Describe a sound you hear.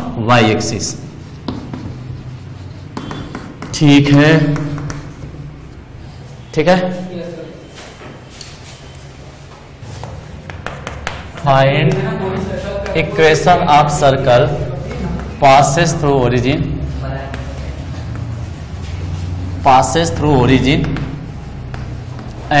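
A man lectures with animation, close to a microphone.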